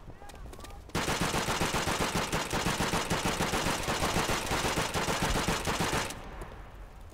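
A machine gun fires a long, rapid, loud burst.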